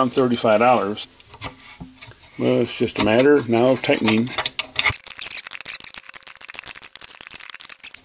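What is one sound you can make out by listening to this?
A ratchet wrench clicks as a nut is tightened on metal.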